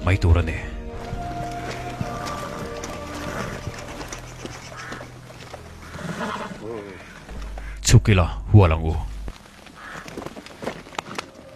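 Horses' hooves thud slowly on a forest path.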